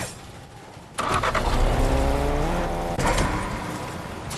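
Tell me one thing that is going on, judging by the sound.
A car engine revs and rises in pitch as it drives off.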